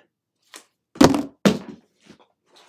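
A wooden panel knocks down onto a table.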